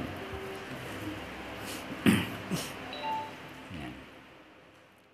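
A man speaks calmly into a microphone in an echoing room.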